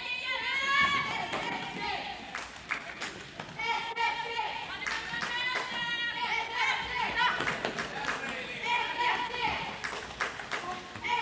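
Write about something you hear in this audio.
A ball thuds on the hard floor.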